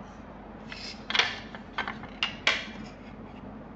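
A plastic ruler taps and slides on paper.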